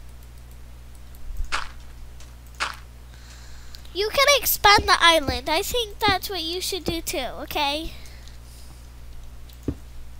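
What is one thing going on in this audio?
Blocks are placed with soft, dull thuds.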